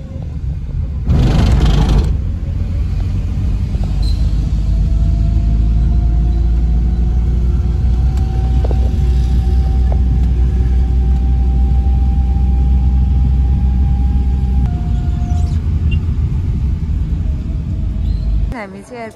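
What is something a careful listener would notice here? A car engine and tyres rumble steadily from inside a moving car.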